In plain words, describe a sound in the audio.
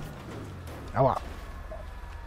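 A car crashes with a loud metallic thud.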